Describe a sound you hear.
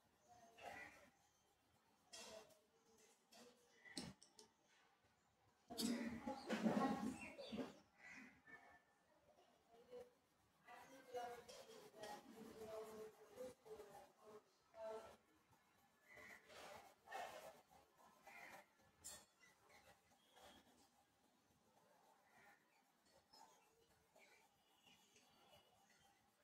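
A pencil scratches softly on paper in quick strokes.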